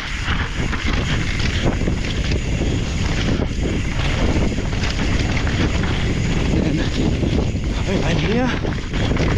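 A mountain bike's chain and frame rattle over bumps.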